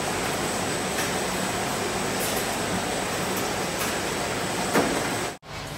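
Plastic fruit punnets knock and click against each other on a conveyor.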